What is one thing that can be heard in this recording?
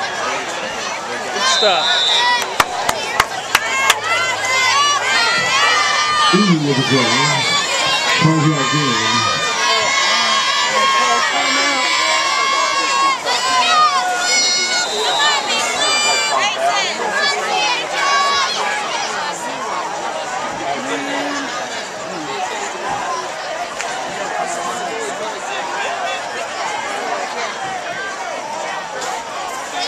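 Spectators close by talk and shout.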